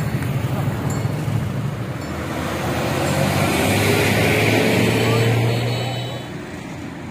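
A bus engine rumbles loudly close by as the bus passes.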